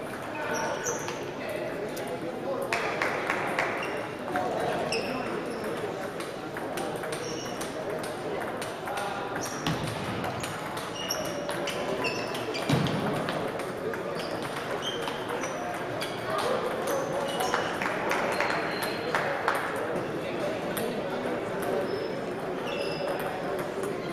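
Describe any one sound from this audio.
Sneakers squeak on a sports floor.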